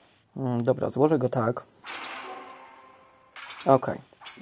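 Magical game effects chime and whoosh as rows of tiles burst.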